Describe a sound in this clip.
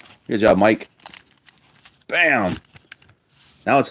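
Plastic toy parts click and rattle as they are handled.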